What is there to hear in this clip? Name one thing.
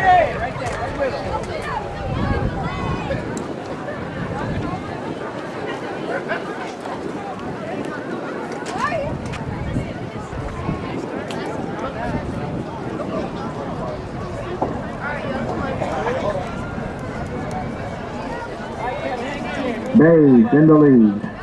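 Voices of a crowd chatter and call out across an open outdoor field.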